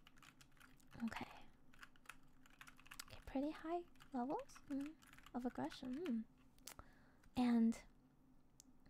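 A young woman speaks playfully into a microphone in a high, cute voice.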